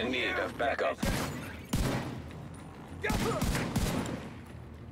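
Rifle shots fire sharply, a few at a time.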